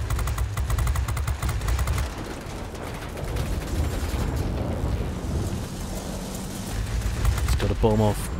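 Shells burst with dull bangs nearby.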